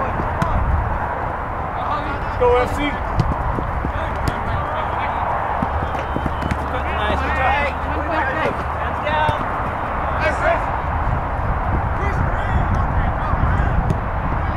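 Wind blows steadily across an open field outdoors.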